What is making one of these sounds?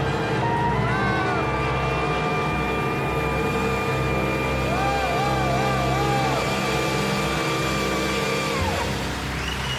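A band plays jazz.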